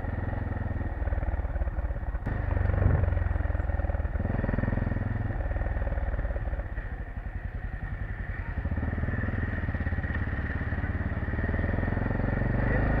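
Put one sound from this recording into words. A motorcycle engine putters and revs close by.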